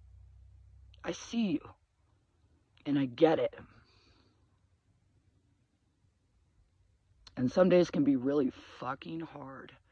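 A middle-aged woman speaks calmly and close by, with pauses.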